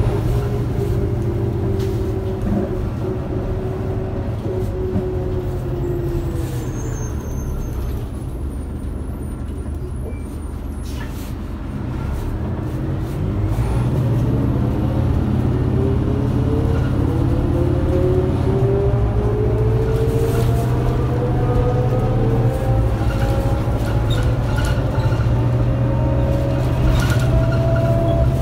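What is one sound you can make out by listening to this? A bus engine hums low and steady, dropping as the bus slows and rising as it speeds up again.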